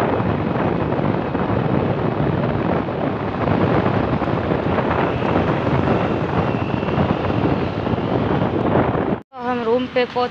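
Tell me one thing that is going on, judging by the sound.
Wind buffets the microphone while riding a motorcycle along a road.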